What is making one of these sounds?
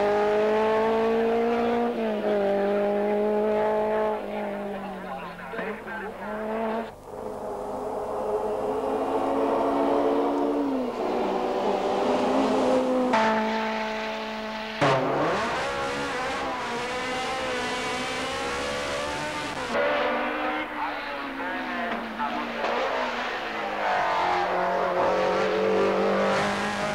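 A racing car engine roars and revs, rising and falling in pitch.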